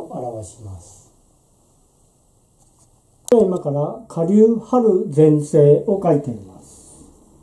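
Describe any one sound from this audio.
A middle-aged man reads aloud calmly and close by.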